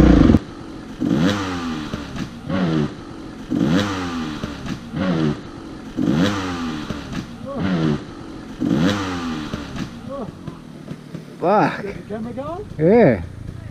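A motorbike engine revs hard again and again, each burst rising and falling in pitch.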